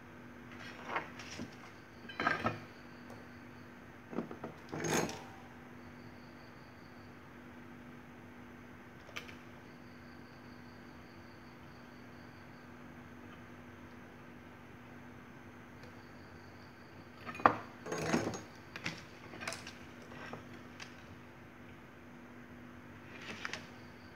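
Wires and a metal plate scrape and tap on a wooden bench.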